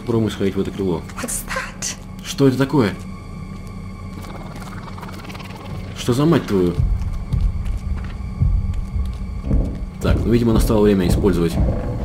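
Footsteps crunch slowly on a gritty floor.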